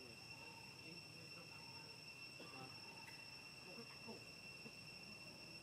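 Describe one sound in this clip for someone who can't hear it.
A wire fence rattles softly as monkeys climb it.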